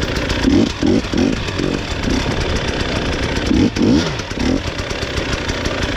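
Branches scrape and brush against a passing vehicle.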